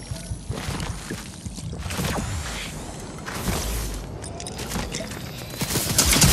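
A bow creaks as it is drawn.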